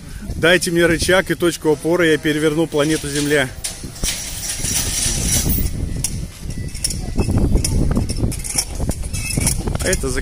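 Water gushes and churns through a lock gate.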